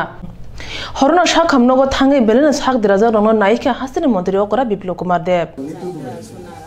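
A young woman reads out calmly through a microphone.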